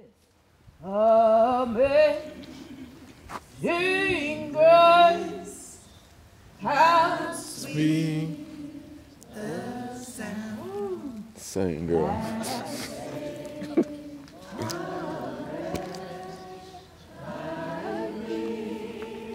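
A woman speaks loudly and dramatically outdoors, her voice rising and falling.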